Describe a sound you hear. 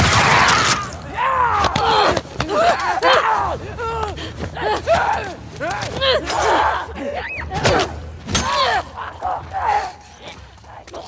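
A creature shrieks and gurgles up close.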